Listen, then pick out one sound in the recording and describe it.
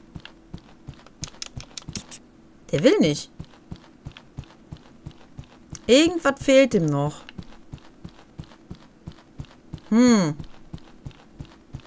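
A goose's feet patter quickly and steadily on the ground.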